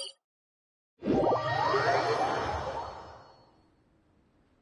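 A shimmering teleport effect swells and slowly fades.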